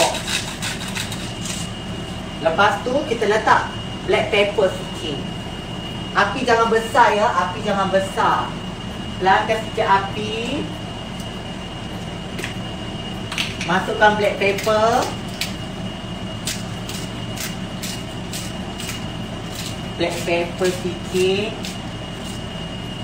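A utensil clinks against a pan.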